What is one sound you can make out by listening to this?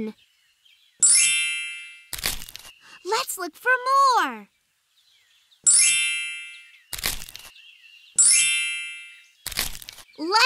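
A bright sparkling chime rings out as a leaf vanishes.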